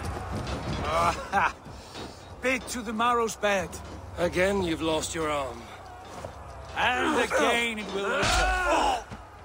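A man speaks loudly and with a mocking tone.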